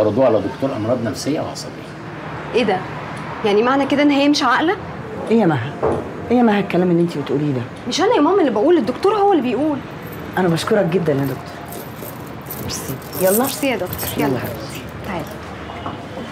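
A young woman talks with feeling nearby.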